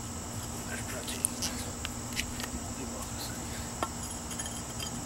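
A small hammer taps on brick.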